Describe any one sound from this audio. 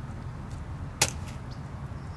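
A small object drops with a dull thud onto soft sand.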